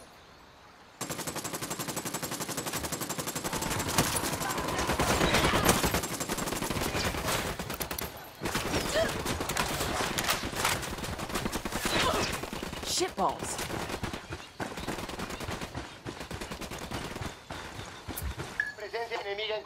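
Gunfire rattles rapidly nearby.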